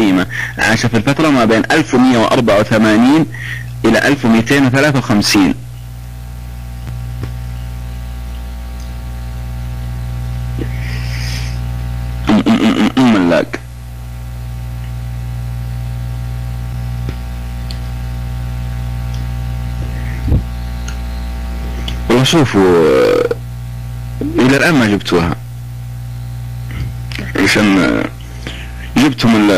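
A man speaks through a microphone in short bursts.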